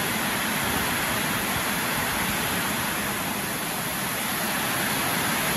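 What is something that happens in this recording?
Heavy rain pours steadily on a metal roof.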